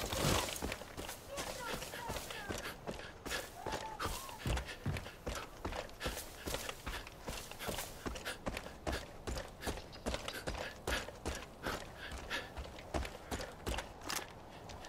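Footsteps crunch steadily on dry grass and dirt.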